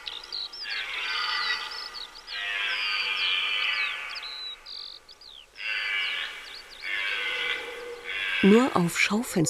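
A red deer stag bellows loudly in a forest.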